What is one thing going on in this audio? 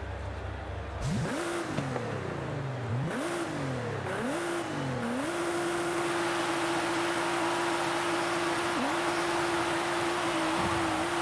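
A race car engine revs up and down repeatedly, then roars at a steady high pitch.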